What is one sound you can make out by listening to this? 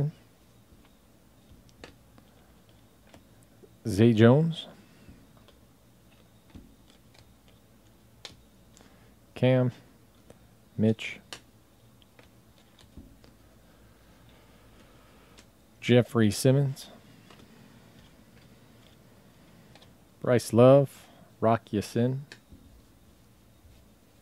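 Trading cards shuffle and flick softly between hands.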